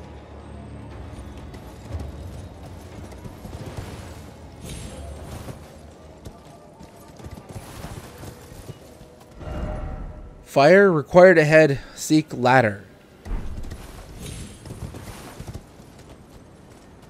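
A horse's hooves clatter on roof tiles.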